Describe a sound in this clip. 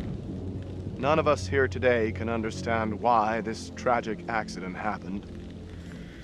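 A young man reads out solemnly, close by.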